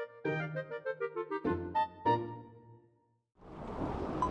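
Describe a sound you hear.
A short, cheerful video game jingle plays.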